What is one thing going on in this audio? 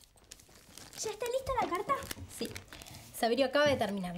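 A teenage girl speaks with animation close by.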